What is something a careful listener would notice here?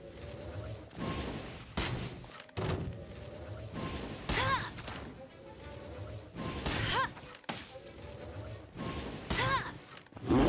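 Arrows burst into fiery blasts.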